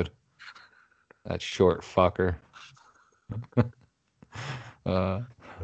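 A man laughs heartily over an online call.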